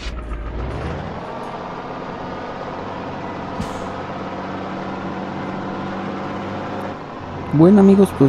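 A truck engine hums steadily and slowly rises in pitch as it speeds up.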